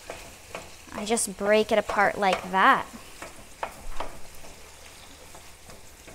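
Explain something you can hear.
Metal tongs clink against a frying pan.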